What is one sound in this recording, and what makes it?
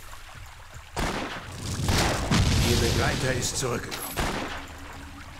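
Magic blasts and combat noises burst from a video game.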